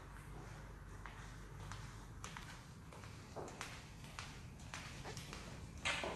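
Footsteps click on a hard floor in a quiet room.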